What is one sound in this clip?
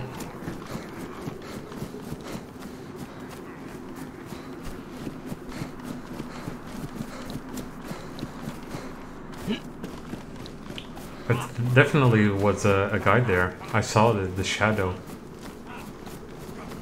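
Footsteps swish and crunch through dry grass.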